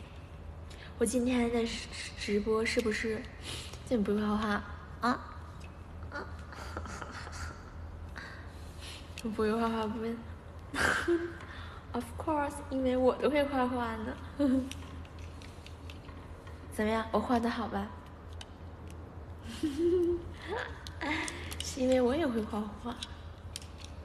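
A young woman talks close to a phone microphone, playfully and with animation, in short bursts.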